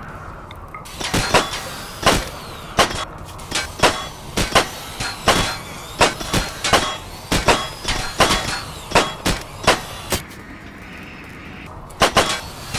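Blades clash and strike in quick, sharp blows.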